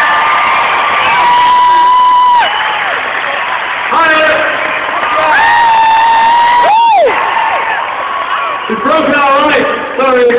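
A large crowd sings along loudly.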